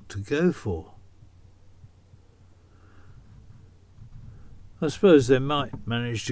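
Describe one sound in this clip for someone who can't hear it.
An elderly man speaks calmly and close up, with pauses.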